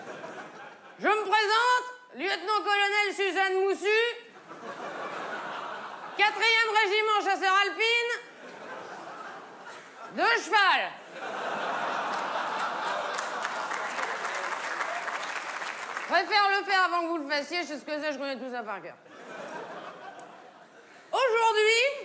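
A woman sings loudly through a microphone in a large hall.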